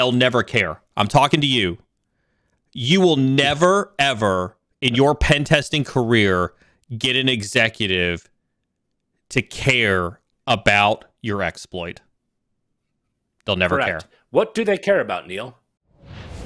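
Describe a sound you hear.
A middle-aged man speaks with animation over a microphone.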